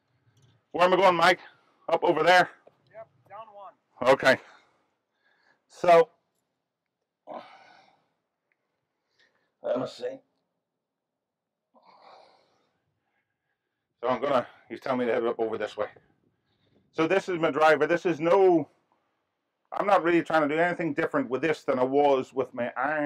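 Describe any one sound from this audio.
An older man talks calmly and clearly, close to a microphone, with pauses.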